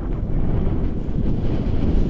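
A young man speaks loudly over the wind.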